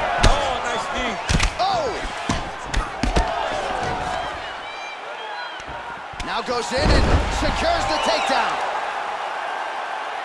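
A crowd roars and cheers.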